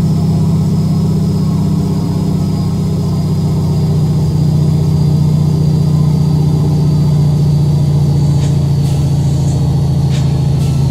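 A truck's diesel engine drones steadily at a low pitch.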